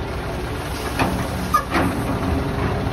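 Grain pours from a grab bucket into a metal trailer with a rattling hiss.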